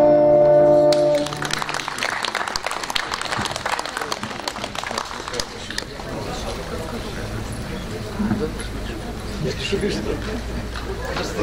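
An acoustic guitar strums through loudspeakers outdoors.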